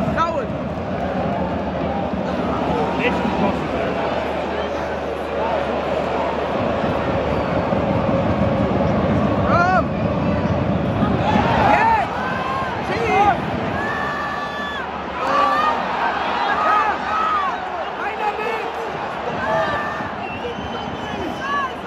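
A large stadium crowd roars and chants loudly outdoors.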